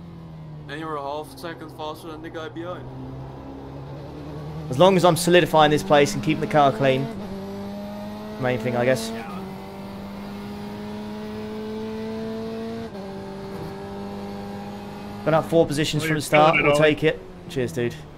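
A racing car engine drones steadily, rising and falling in pitch through the gears.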